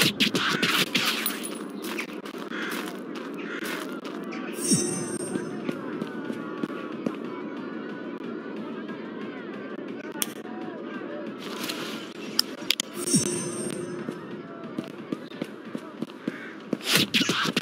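Footsteps walk across hard pavement.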